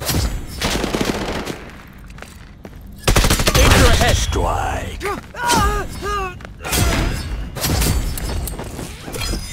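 Gunshots ring out in bursts.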